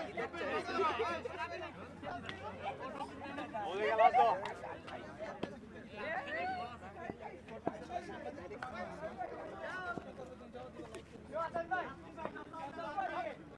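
Men talk and shout outdoors in a group.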